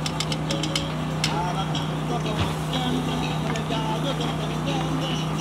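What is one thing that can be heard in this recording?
Meat sizzles on a hot griddle.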